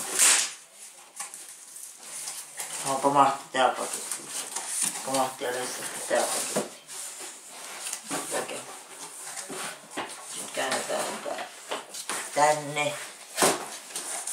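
Cardboard rustles and scrapes as a box is handled.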